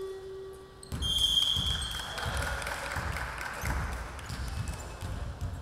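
Sneakers squeak sharply on a wooden court in an echoing hall.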